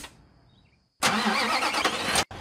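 A truck engine idles.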